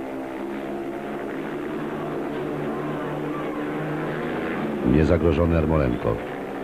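A motorcycle engine roars loudly as it speeds along a track.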